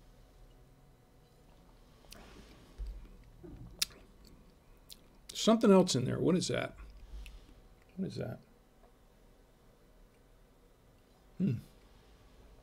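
A man slurps wine from a glass.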